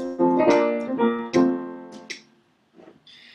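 Piano notes ring out briefly.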